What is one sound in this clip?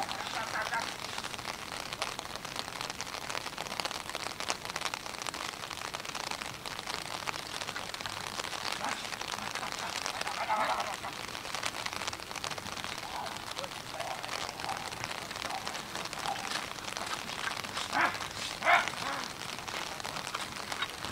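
Carriage wheels rattle over turf.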